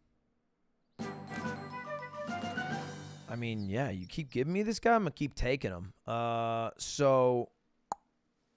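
A cheerful game jingle plays.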